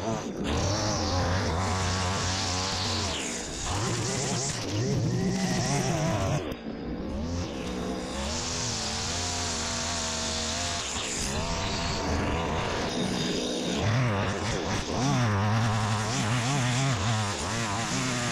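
A string trimmer cuts through grass with a whipping, rattling sound.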